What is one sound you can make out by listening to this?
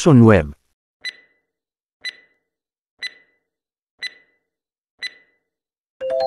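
A timer ticks once a second.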